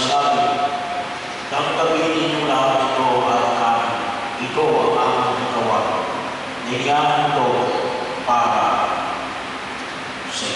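An elderly man speaks slowly and solemnly through a microphone in an echoing hall.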